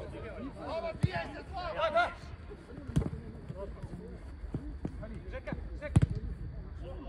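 A football thuds when kicked.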